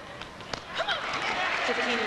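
A crowd in a large hall breaks into applause.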